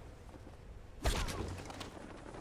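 Boots land with a thump on wooden planks.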